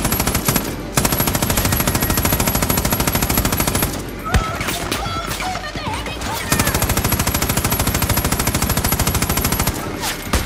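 A heavy machine gun fires rapid, steady bursts.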